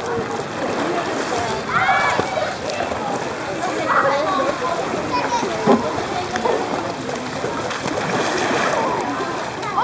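Children shout and chatter nearby, outdoors.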